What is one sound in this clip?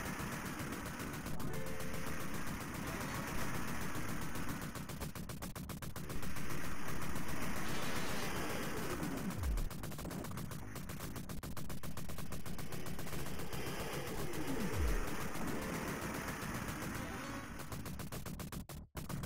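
Rapid gunfire rattles without pause.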